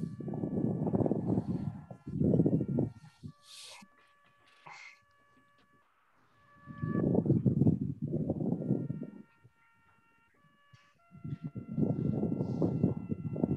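A man talks through an online call in short bursts.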